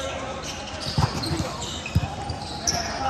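A volleyball is hit with sharp slaps in a large echoing hall.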